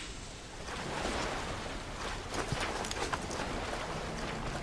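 Water pours down and splashes steadily.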